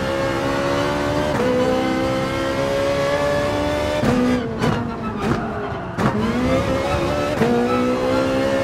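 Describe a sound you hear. A racing car engine roars loudly at high revs, dropping in pitch with each gear shift and braking.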